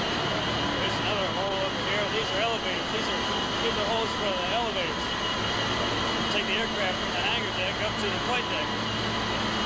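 Men talk in a large echoing hall.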